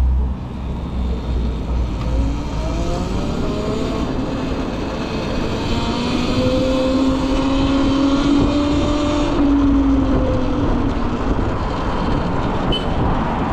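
Wind rumbles steadily against the rider.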